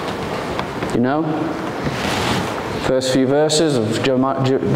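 A man speaks clearly into a microphone in a large echoing hall.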